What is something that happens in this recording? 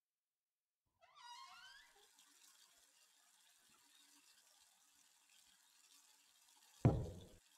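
Water pours from a tap into a bath.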